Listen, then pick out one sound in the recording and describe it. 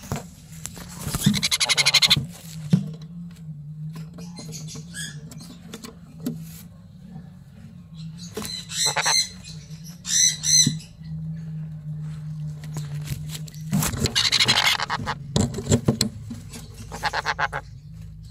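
Parrots screech loudly and harshly in short, piercing bursts close by.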